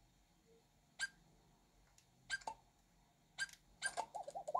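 Short menu blips sound from a handheld game console's speaker.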